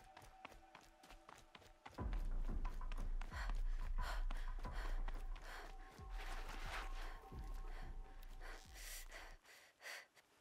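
Footsteps patter on hard rock.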